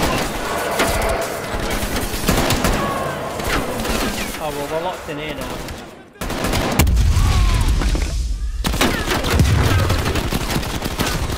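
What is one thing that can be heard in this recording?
Rapid gunshots fire in bursts with a sharp ring.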